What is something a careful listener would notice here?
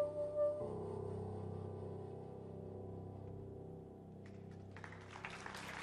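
A double bass plays low notes.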